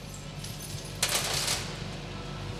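A hand brushes across the top of a plastic cabinet.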